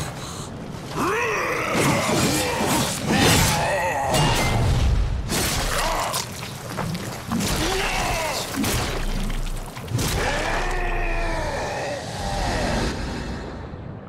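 Metal blades clash and slash in a fight.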